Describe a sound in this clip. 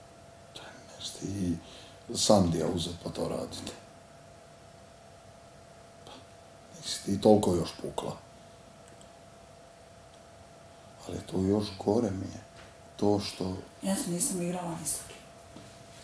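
A man talks quietly in bursts, close by.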